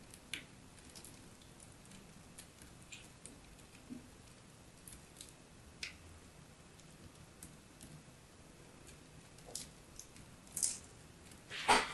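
Crumbly chalk crunches and crumbles between fingers, close up.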